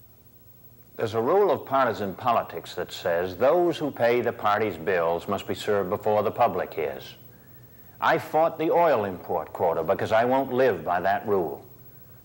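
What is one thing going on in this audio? A middle-aged man speaks earnestly and closely into a microphone.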